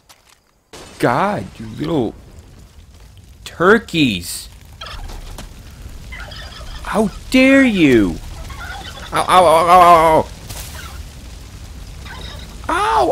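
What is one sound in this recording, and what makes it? A turkey gobbles loudly, again and again.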